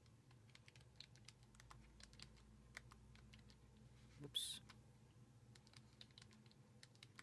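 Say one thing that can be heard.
Fingers tap quickly on the small keys of a keyboard with soft clicks.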